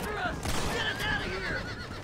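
A gunshot cracks.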